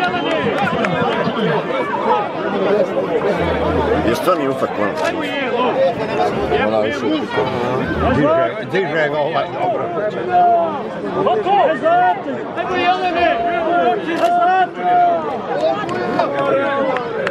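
A large crowd chatters and shouts from a distance outdoors.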